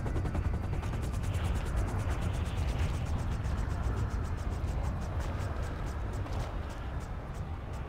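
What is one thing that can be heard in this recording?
A helicopter's rotor whirs and thumps as it idles.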